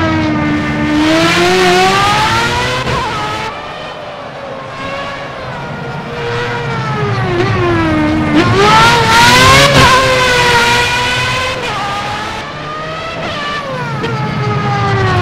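A racing car engine screams at high revs, rising and falling as the car shifts gears and passes by.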